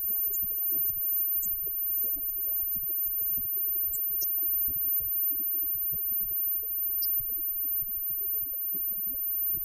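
A live band plays rock music loudly.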